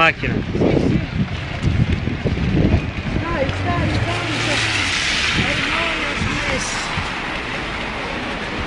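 Rain falls steadily on a wet street outdoors.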